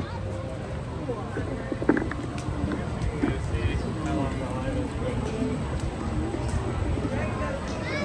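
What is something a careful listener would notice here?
A crowd of people talk and walk by outdoors.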